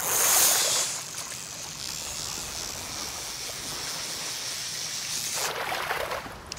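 A fishing reel whirs steadily as the line is wound in.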